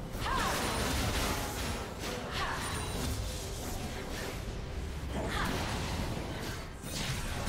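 Game combat effects crackle, whoosh and clash in a busy fight.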